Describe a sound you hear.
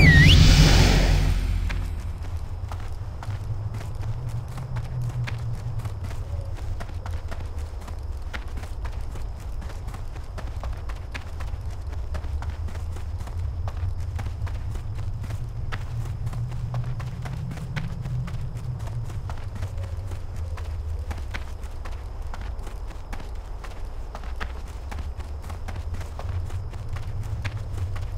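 Hooves clop steadily on hard ground.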